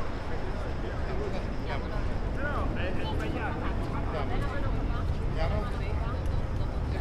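Men and women chatter and murmur nearby outdoors.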